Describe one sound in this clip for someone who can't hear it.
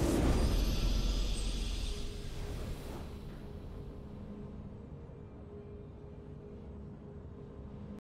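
A triumphant victory fanfare plays.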